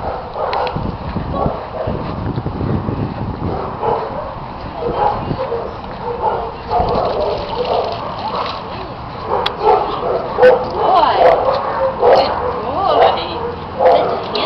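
A woman talks playfully to a dog nearby.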